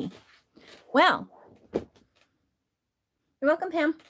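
A plastic storage box slides and bumps on a wooden table.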